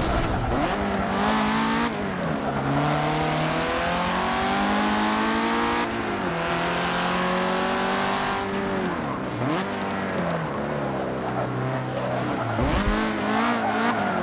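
A car engine revs high, rising and dropping as gears shift.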